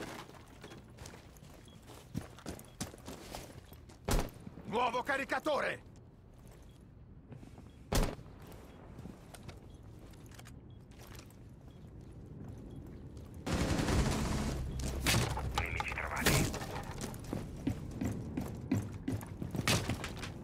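Footsteps crunch on gravel and concrete.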